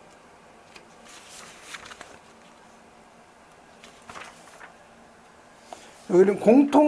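Paper sheets rustle as pages are turned.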